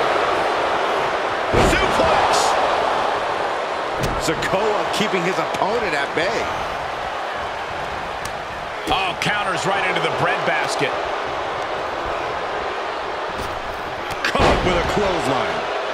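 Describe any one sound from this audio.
Bodies slam down hard onto a wrestling ring with heavy thuds.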